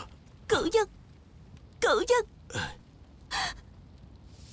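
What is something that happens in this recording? A young woman sobs and gasps.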